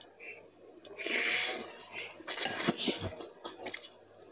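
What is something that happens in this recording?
A young woman slurps noodles loudly.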